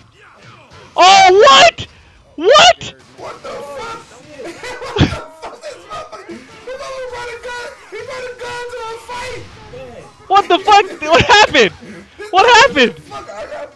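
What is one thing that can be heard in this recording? A young man shouts and exclaims excitedly into a close microphone.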